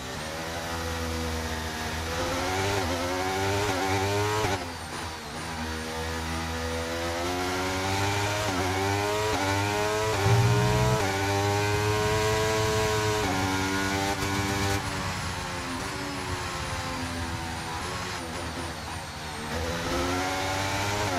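A racing car engine screams at high revs, rising and falling in pitch as the gears shift.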